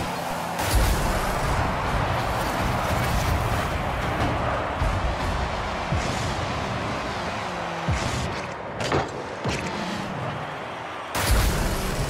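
A video game car engine hums.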